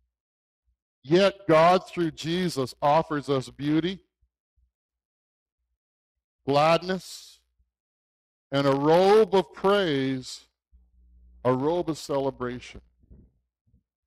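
A man speaks calmly into a headset microphone, with pauses between phrases.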